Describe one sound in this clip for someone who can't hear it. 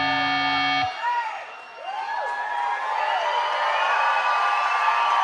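Guitar feedback squeals and wails with sliding pitch through loud amplifiers.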